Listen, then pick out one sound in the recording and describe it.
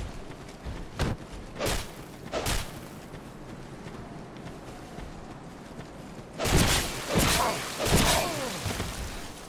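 Metal blades clash and strike with sharp hits.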